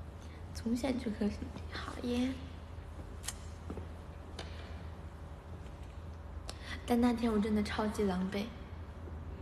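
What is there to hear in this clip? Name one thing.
A young woman speaks casually and close by.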